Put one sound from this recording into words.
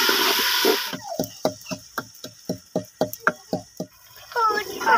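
A wooden pestle pounds rhythmically in a wooden mortar.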